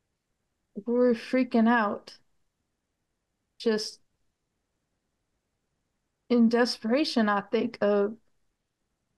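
A middle-aged woman speaks calmly over an online call, in short bursts with pauses.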